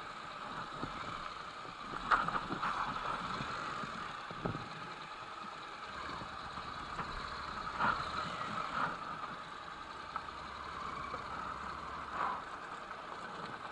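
Tyres crunch over loose gravel and dirt.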